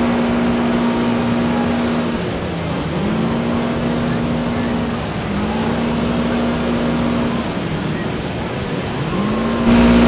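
A car engine revs hard and drops as it shifts gears.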